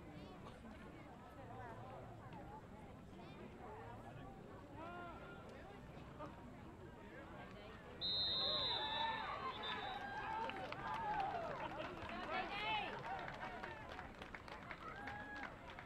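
Spectators shout and cheer close by outdoors.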